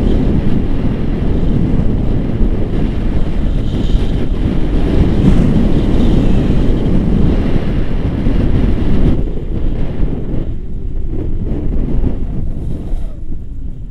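Strong wind rushes and buffets loudly against the microphone.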